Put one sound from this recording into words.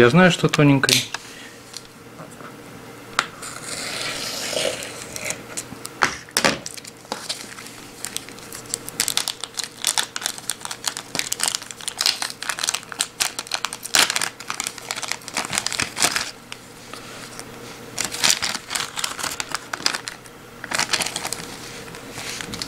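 Paper crinkles and rustles as it is handled.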